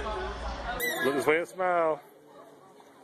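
A dolphin chirps and squeaks.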